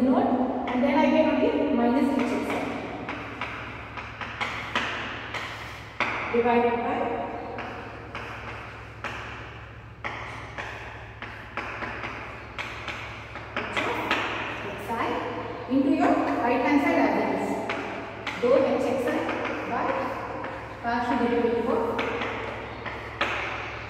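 A woman explains calmly in a room with a slight echo.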